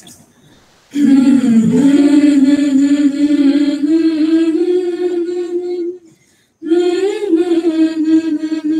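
Young women sing together in unison, heard through an online call.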